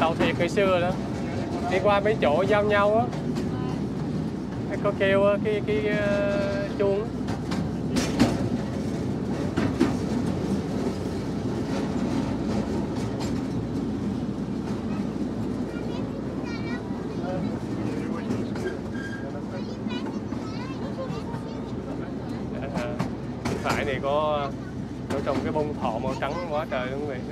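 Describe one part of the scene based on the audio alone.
Young girls chatter and laugh close by, outdoors.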